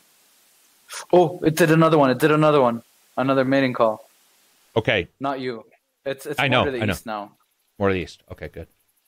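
A second young man answers over an online call.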